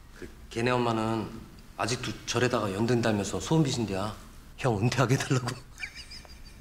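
A young man talks with animation, close by.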